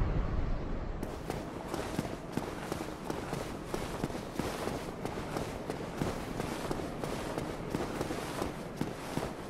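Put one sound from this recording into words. Armoured footsteps clank and tap quickly on stone.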